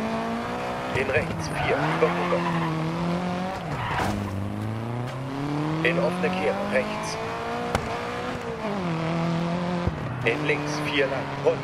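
Tyres skid and scrabble on tarmac through the bends.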